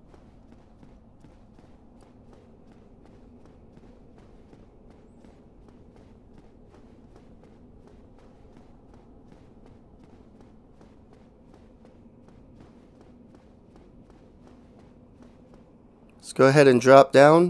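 Armoured footsteps clatter steadily up stone stairs.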